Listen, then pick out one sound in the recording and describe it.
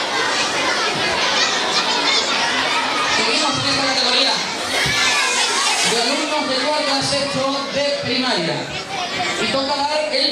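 A young man speaks into a microphone over loudspeakers.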